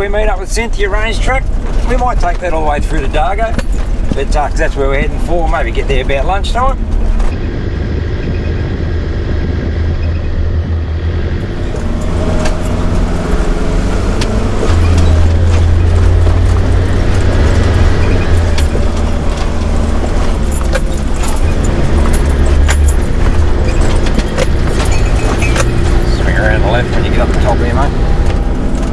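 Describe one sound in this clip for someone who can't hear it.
A vehicle engine rumbles steadily as it drives.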